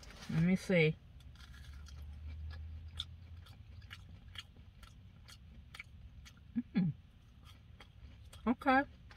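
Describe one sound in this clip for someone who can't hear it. A woman crunches and chews a snack close by.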